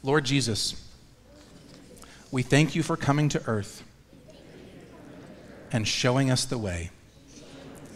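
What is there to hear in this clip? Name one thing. A man speaks calmly in short phrases with pauses, in a large echoing room.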